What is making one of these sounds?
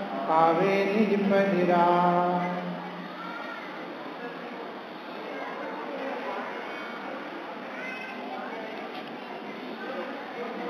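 A man chants in a sustained voice through a microphone.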